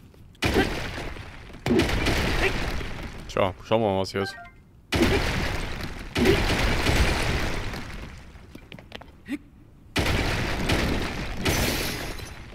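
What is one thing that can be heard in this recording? A hammer strikes rock with loud, crunching blows.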